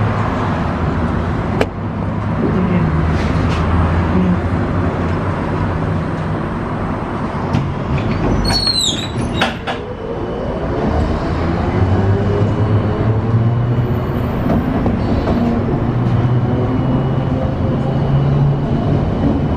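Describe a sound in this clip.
Cars rush past on a road outside.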